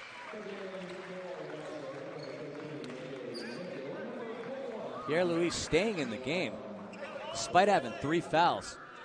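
A crowd murmurs and calls out in a large echoing gym.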